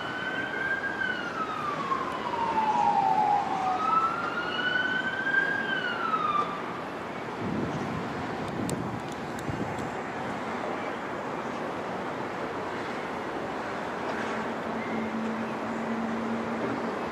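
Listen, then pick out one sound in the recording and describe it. A truck engine rumbles as the vehicle drives past.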